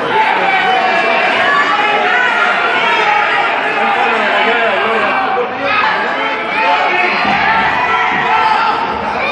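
A crowd shouts and cheers in an arena.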